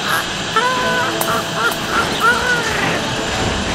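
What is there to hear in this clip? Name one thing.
A man speaks in a high, squeaky cartoon voice.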